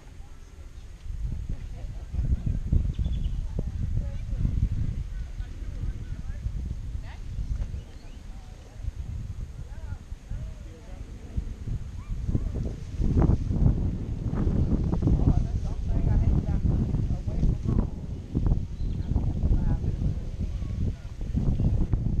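Wind gusts buffet the microphone outdoors.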